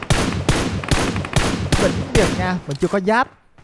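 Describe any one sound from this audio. A rifle fires a rapid string of shots.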